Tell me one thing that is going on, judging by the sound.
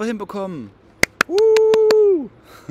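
A man claps his hands several times.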